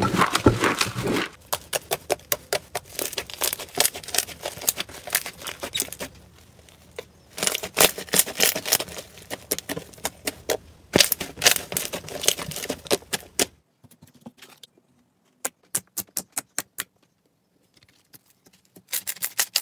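Hands squish and knead soft slime with sticky crackling pops.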